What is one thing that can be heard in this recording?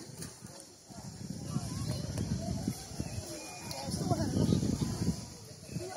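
Swimmers splash in the water.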